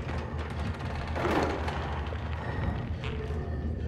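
Small footsteps patter on a hard floor.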